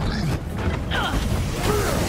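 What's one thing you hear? Electric blasts crackle and zap.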